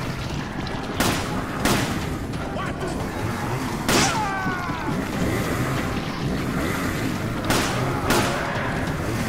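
A pistol fires single shots, one after another.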